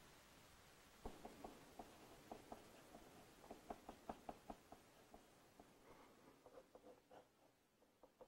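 A pencil scratches and taps on paper.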